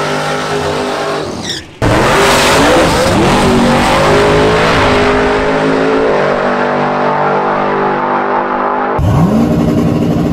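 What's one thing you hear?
A car engine revs hard and loud.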